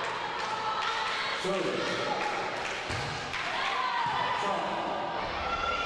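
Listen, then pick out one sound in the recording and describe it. Young players call out to one another across the hall.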